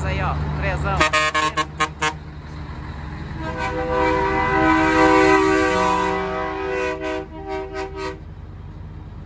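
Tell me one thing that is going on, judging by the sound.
A truck's air horn blares in short blasts, then in a long, loud call.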